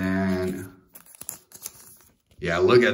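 Playing cards rustle and tap as hands handle them.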